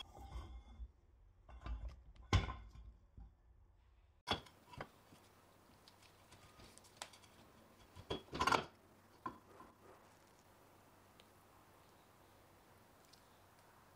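Rusty metal parts clink and knock against each other as they are handled.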